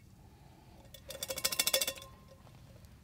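Water pours into a metal cup.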